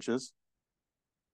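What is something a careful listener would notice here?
A man says a brief word into a microphone.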